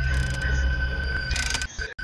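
Static hisses and crackles from a monitor.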